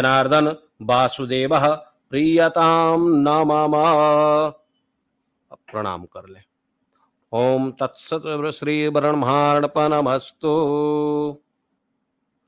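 A man chants in a steady, sung voice close by.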